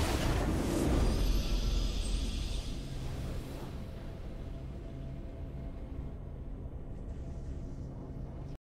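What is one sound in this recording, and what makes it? A game victory fanfare plays and fades.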